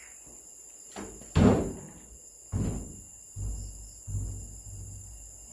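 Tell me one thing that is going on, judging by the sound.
Footsteps thud on a gritty floor.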